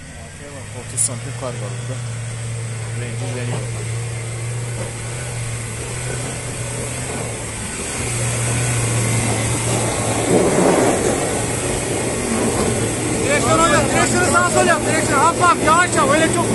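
Another off-road vehicle's engine rumbles steadily as it climbs.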